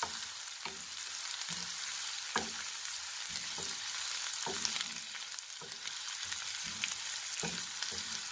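Onions sizzle and crackle in hot oil.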